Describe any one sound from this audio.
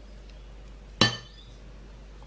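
A metal spoon clinks as it is set down on a dish.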